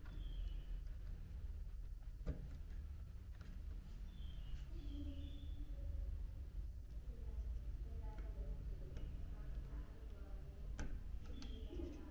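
A small plastic connector clicks into place.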